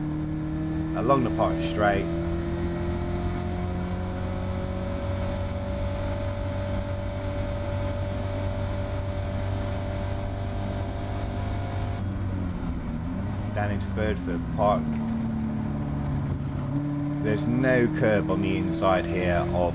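Wind rushes loudly past the open cockpit.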